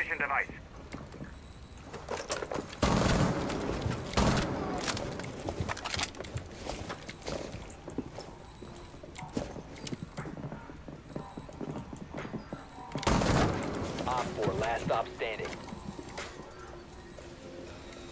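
Gunshots fire in short, quick bursts.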